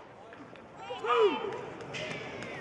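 A man shouts a call loudly from close by.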